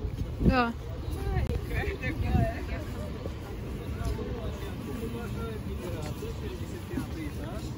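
Young men talk nearby outdoors.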